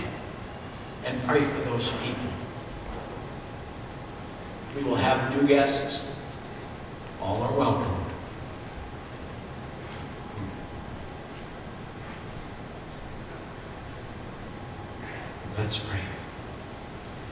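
A woman speaks into a microphone in short bursts, amplified in a large echoing hall.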